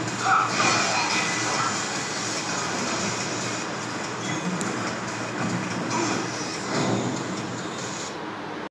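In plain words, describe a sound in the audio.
Fighting game music plays through a loudspeaker.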